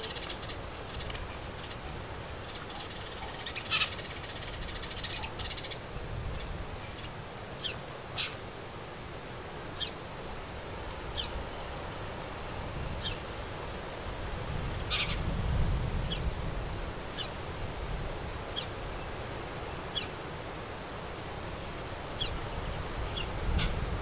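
Wind rustles leaves outdoors.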